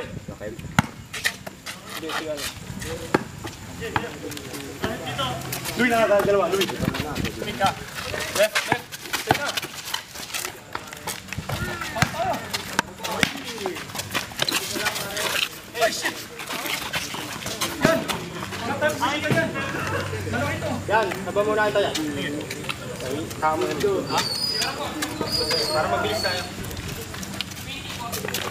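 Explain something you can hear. A basketball bounces on a concrete court outdoors.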